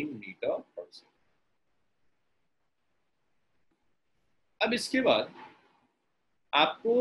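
A young man explains calmly through a microphone on an online call, in short bursts with pauses.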